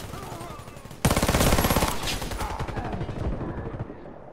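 A rifle fires a rapid burst of loud shots.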